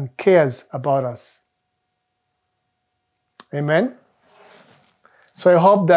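A man speaks calmly and clearly into a close microphone, with pauses.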